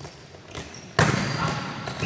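A volleyball is struck hard with a loud smack in a large echoing hall.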